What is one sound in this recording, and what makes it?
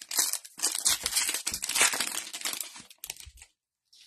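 Foil wrapper crinkles and tears up close.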